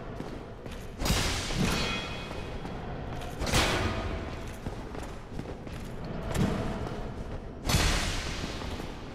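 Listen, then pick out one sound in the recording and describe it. Heavy blows clang against metal armour.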